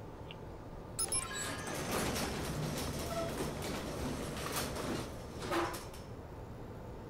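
A metal roller door rattles as it rolls open.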